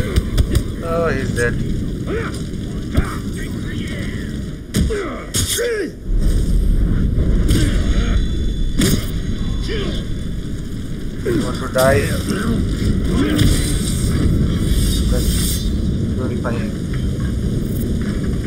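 A creature growls and screams as it is struck.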